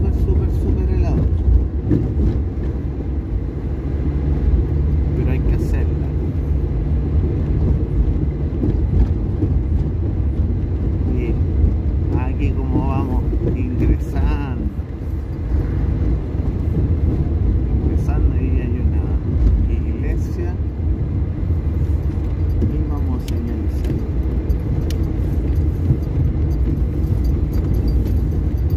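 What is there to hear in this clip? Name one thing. A car engine rumbles steadily as it drives along a street.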